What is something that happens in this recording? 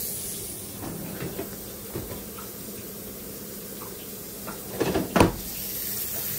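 A refrigerator drawer slides and bangs shut.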